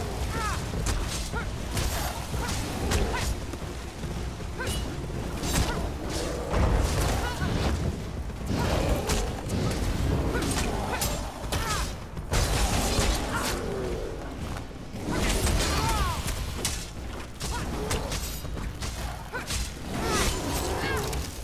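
Ice magic crackles and shatters.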